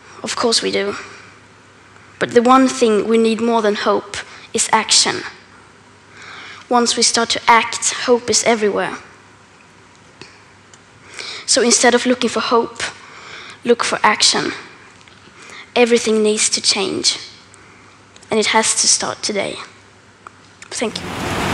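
A girl speaks calmly through a microphone.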